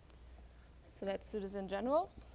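A young woman speaks with animation.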